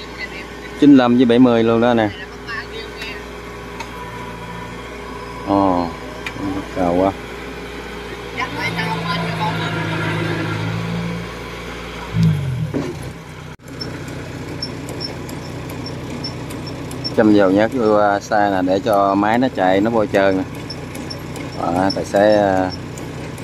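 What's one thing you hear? A combine harvester engine runs with a steady low hum close by.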